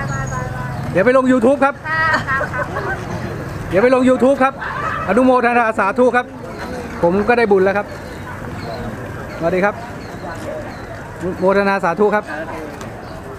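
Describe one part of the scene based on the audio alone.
A man talks loudly close by, outdoors.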